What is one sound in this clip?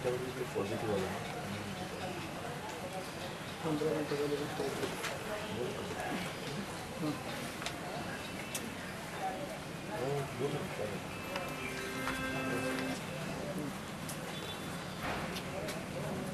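Men talk nearby in low voices.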